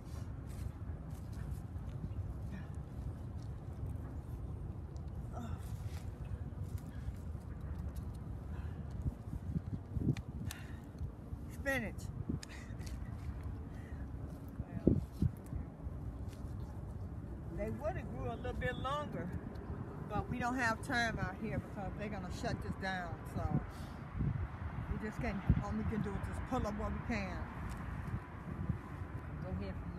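A trowel scrapes and digs into soil.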